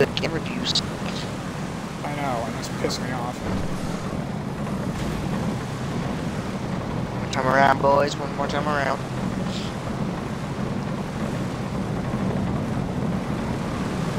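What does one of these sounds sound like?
Racing car engines roar steadily.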